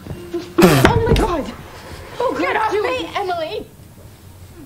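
A young woman cries out and speaks tearfully, close by.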